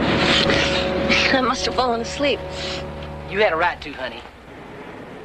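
A young woman speaks softly and cheerfully.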